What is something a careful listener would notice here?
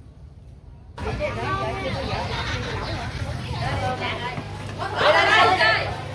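A busy market crowd chatters.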